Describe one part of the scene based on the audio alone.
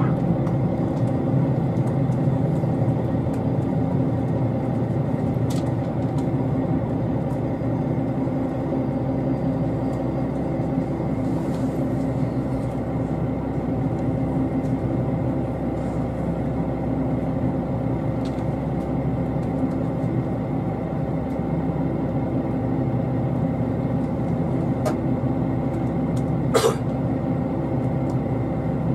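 A train engine hums and rumbles steadily, heard from inside the carriage.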